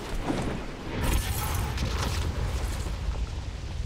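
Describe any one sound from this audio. A rushing hum sweeps along during a fast glide.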